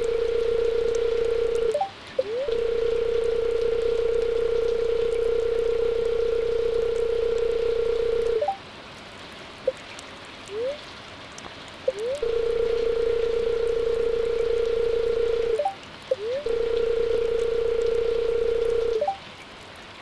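A steady electronic hum plays while game dialogue text types out.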